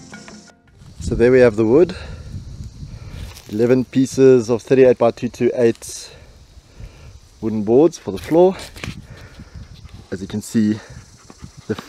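A young man speaks calmly and close by, outdoors.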